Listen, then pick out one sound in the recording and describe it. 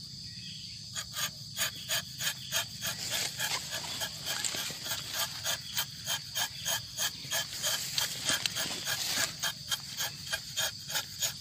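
A tapping knife scrapes bark from a tree trunk in quick, even strokes.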